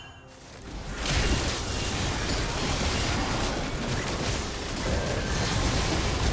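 Video game spell blasts and sword hits clash loudly in a fierce fight.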